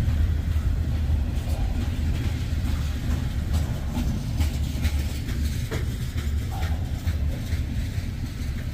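Train wheels clack and squeal over the rail joints.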